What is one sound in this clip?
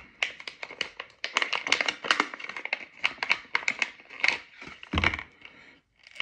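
Plastic wrapping crinkles and rips as it is torn open.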